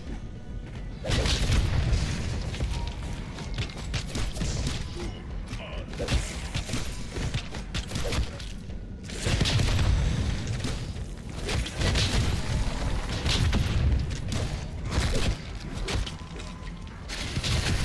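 Rapid gunfire blasts in loud bursts.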